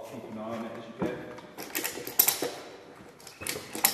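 A ratchet strap clicks as it is tightened.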